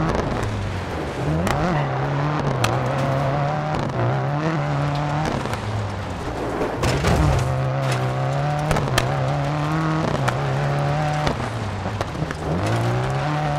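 Tyres crunch and slide on gravel.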